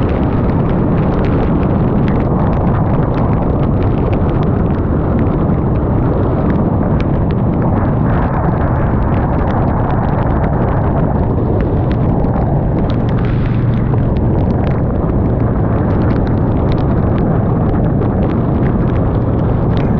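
Wind roars loudly past the rider on a fast ride.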